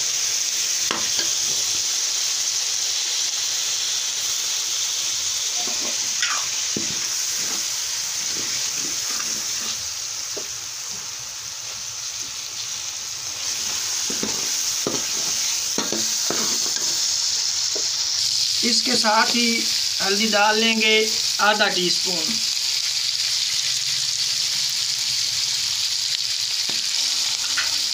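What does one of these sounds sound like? A metal ladle scrapes and clinks against a metal pan.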